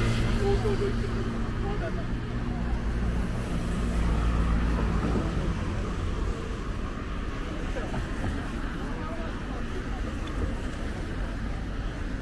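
Traffic rumbles past on a busy road outdoors.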